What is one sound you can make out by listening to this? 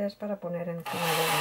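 A cordless drill whirs as it drives a screw into wood.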